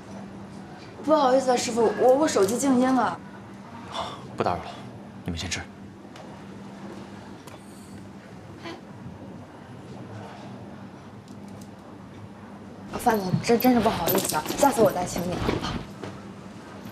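A young woman speaks apologetically, close by.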